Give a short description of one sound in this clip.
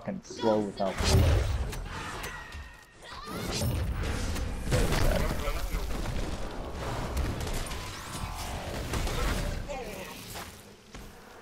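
Magic blasts and heavy impacts crash in a fight.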